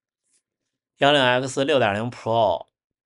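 A young man speaks up close with animation.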